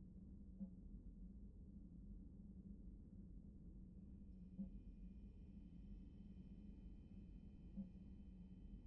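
A soft electronic blip sounds.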